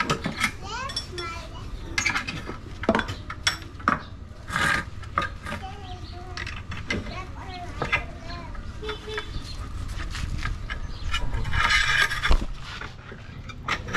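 A metal bar scrapes and clanks against metal.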